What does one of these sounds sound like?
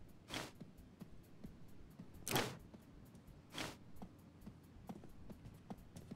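Footsteps tap steadily.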